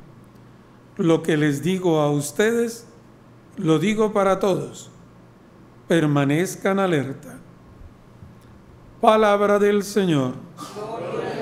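A man chants through a microphone in short phrases.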